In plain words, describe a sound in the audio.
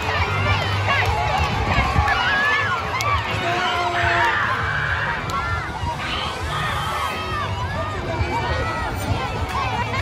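Children chatter and call out excitedly nearby.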